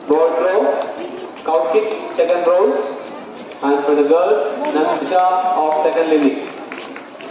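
A man speaks loudly through a loudspeaker in an echoing hall.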